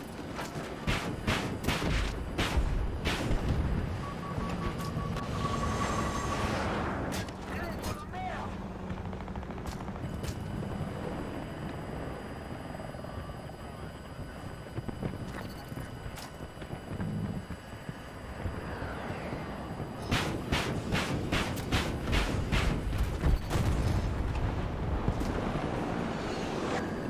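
A helicopter's rotor and engine drone steadily.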